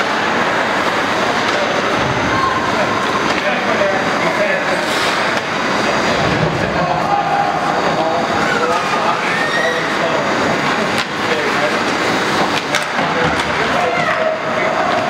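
Ice skates scrape and carve across ice in a large echoing arena.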